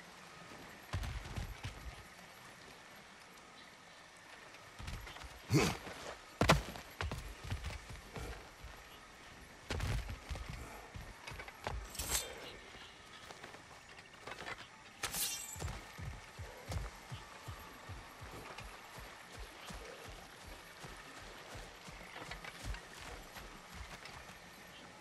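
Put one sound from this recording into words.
Heavy footsteps thud steadily on wooden boards and ground.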